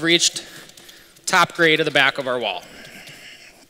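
A man speaks with animation in a large echoing hall.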